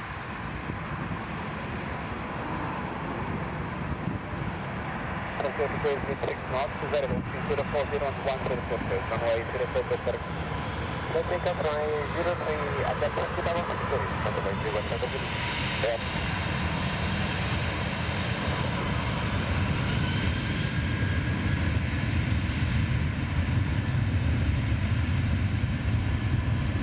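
A jet engine roars loudly as an airliner passes close by.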